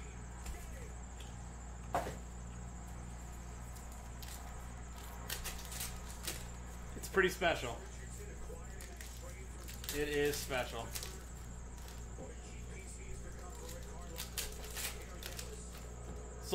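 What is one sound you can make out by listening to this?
Foil card packs rustle and crinkle as they are handled.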